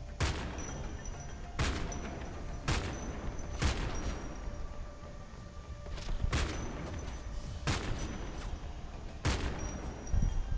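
Sniper rifle shots crack one after another, each with a short echo.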